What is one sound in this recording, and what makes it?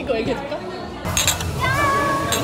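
Glasses clink together in a toast.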